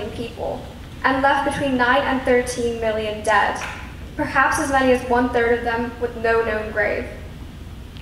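A young singer's voice rings out over a loudspeaker in a large echoing hall.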